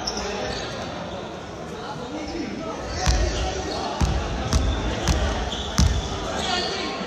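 A ball bounces on a wooden floor.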